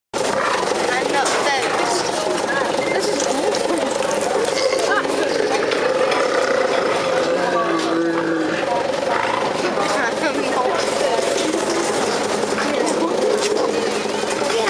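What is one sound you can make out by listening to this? Children chatter and call out excitedly nearby.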